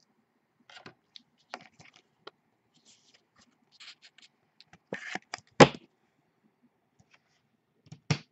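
Hands shuffle through stiff cards.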